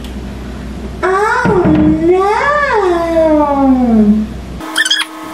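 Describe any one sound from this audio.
A young woman sings a drawn-out, sliding note.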